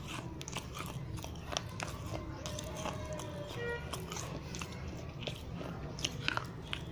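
A person crunches and chews food very close to a microphone.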